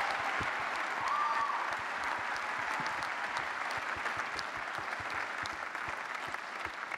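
A large crowd claps and cheers in a big echoing hall.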